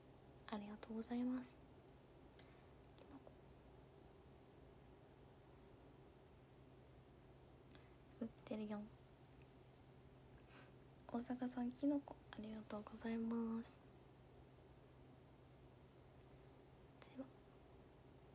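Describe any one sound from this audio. A young woman speaks close to a microphone, calmly and in short bursts.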